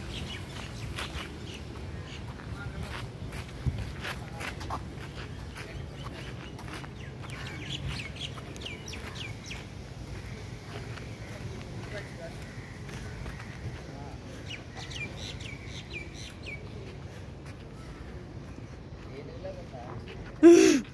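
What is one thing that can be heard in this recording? Footsteps crunch slowly on a dirt path outdoors.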